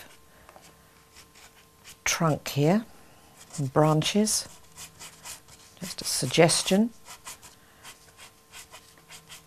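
A pastel stick scratches softly on paper.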